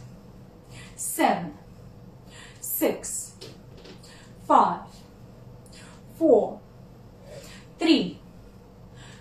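A young woman calls out counts in short, falling bursts, close by.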